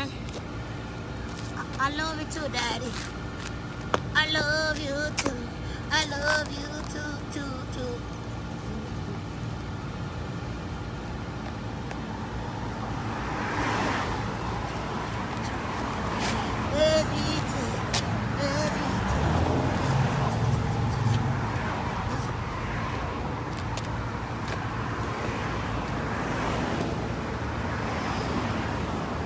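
Shoes shuffle and scuff on pavement.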